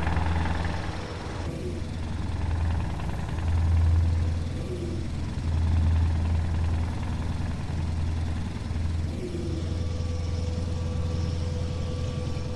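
A truck engine drones low and steady, swelling and easing.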